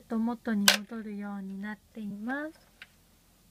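A toy plays a short electronic tune.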